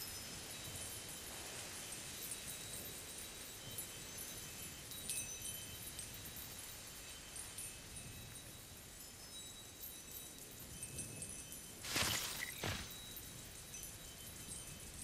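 Footsteps pad softly over soft earth.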